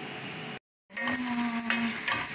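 A wooden spoon scrapes and stirs food in a metal pan.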